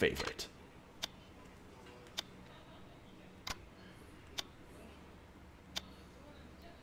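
Short soft clicks sound as a menu selection moves.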